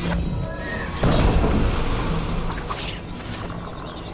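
A heavy chest creaks open with a loud shimmering burst.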